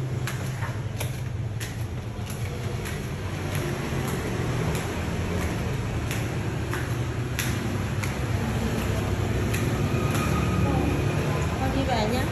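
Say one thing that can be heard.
Sandals slap on stair steps.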